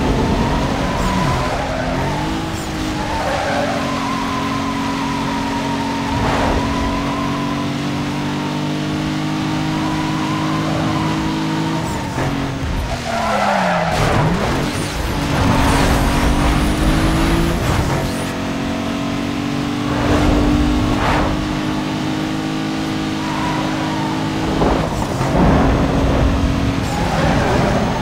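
A racing car engine roars at high revs, dropping briefly as gears shift.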